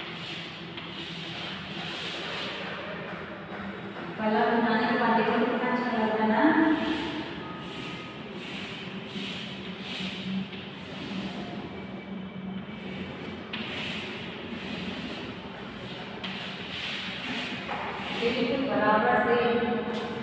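Chalk scrapes and rubs on a board.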